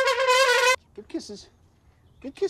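A small dog barks.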